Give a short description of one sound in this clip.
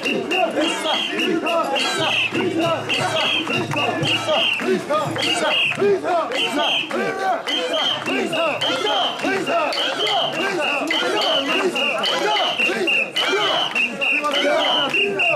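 A crowd of men and women chant loudly and rhythmically close by.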